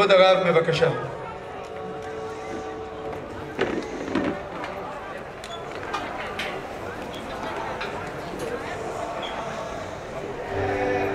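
A crowd of men murmurs and chats nearby.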